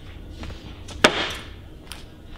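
An object is set down with a knock on top of a plastic crate.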